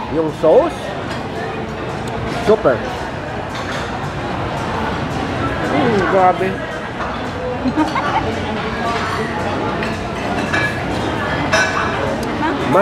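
Many people chatter nearby in a busy room.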